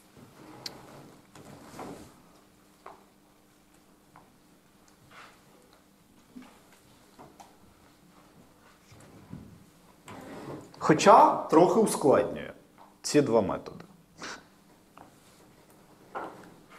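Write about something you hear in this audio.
A man speaks calmly in a room with a slight echo, pausing often.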